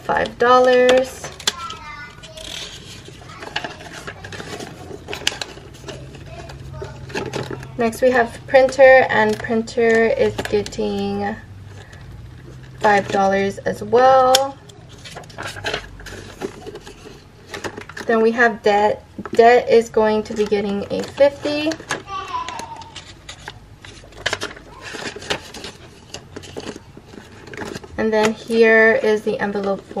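Plastic binder sleeves crinkle and rustle as they are handled.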